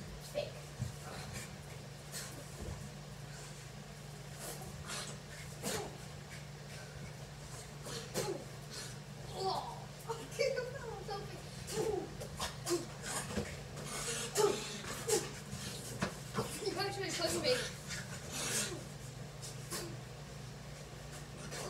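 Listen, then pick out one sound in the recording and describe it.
Feet thump on the floor as boys jump about.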